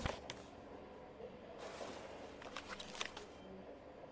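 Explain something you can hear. A paper folder is flipped open with a soft rustle.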